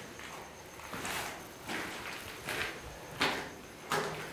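Clothing rustles as a person moves close by.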